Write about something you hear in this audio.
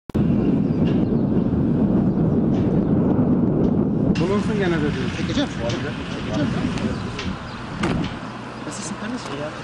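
Flags flap in a strong wind.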